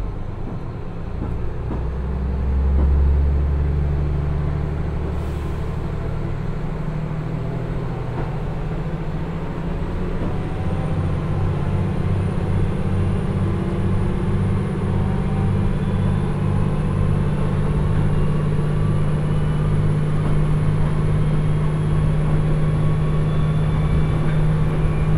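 A diesel railcar engine rumbles deeply and revs up as the train pulls away.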